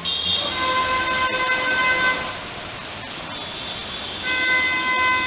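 Car tyres hiss on a wet road.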